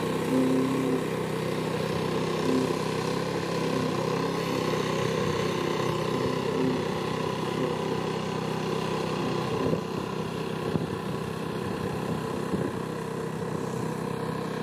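A small engine chugs steadily and loudly close by.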